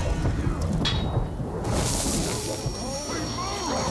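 A sword clangs against an enemy in a fight.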